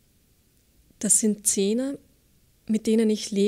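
A young woman reads aloud calmly into a microphone.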